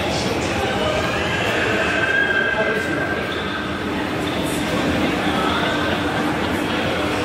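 A crowd murmurs indistinctly in a large echoing hall.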